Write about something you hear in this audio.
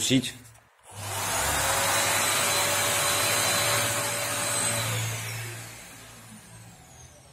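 An orbital sander whirs steadily.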